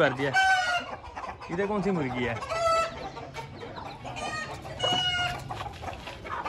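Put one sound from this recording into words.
A young rooster gives short, harsh calls several times.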